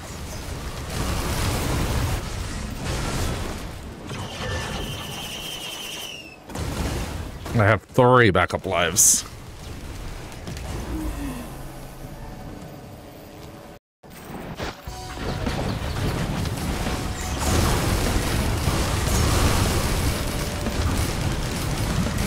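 Magic blasts crackle and boom in a fast fight.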